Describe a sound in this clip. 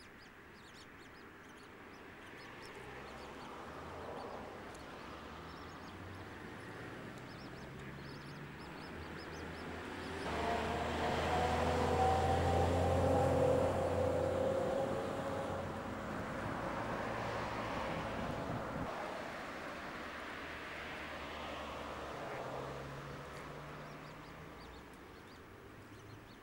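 Water laps and ripples gently.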